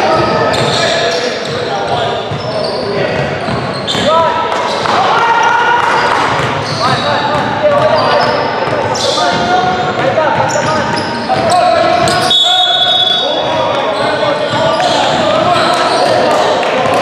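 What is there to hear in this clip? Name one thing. A basketball thuds on the floor.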